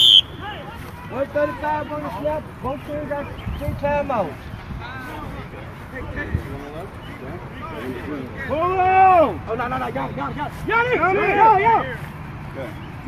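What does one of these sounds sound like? Men shout loudly and excitedly close by, outdoors.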